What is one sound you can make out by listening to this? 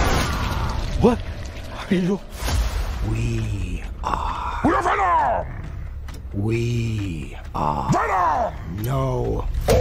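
A man speaks in a strained voice.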